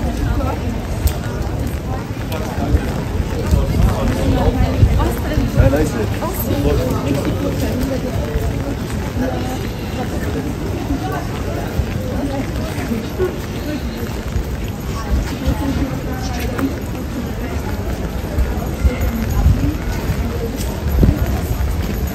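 A crowd of people chatters in a busy street outdoors.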